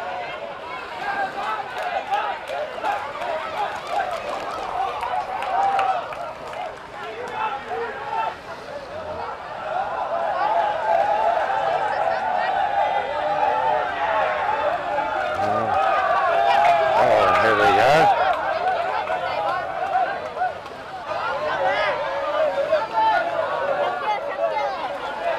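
A large crowd of men and women talks and calls out loudly outdoors.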